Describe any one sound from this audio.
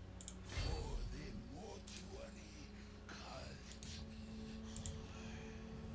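Short interface clicks sound a few times.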